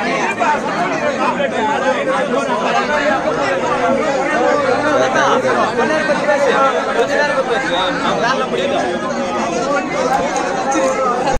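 A crowd of men argue loudly with many overlapping voices.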